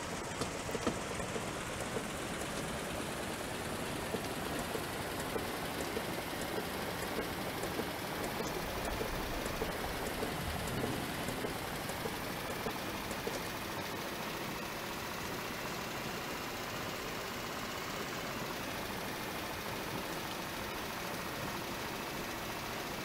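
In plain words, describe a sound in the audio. A bus engine hums steadily.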